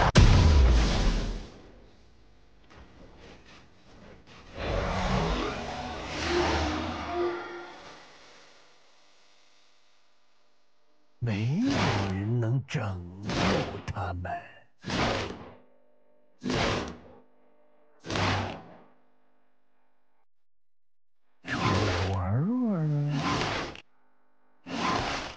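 Video game sound effects whoosh and clash as a character casts abilities.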